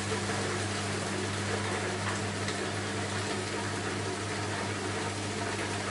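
A washing machine hums steadily as its drum turns.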